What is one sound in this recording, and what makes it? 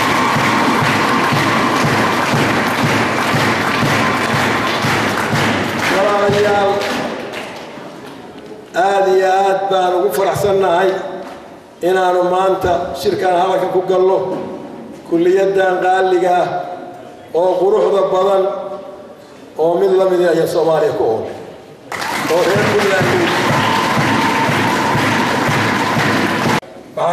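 An elderly man speaks loudly and firmly into a microphone, in short bursts with pauses.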